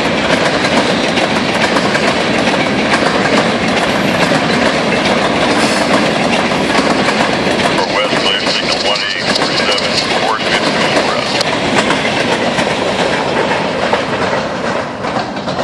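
Freight train cars rumble and clatter loudly past, close by.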